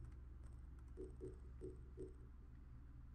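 Soft menu clicks tick several times in quick succession.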